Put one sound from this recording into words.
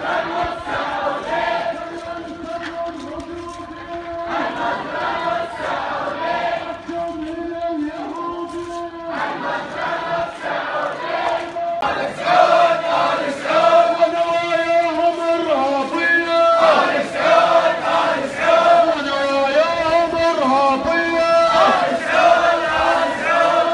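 A crowd chants loudly in unison outdoors.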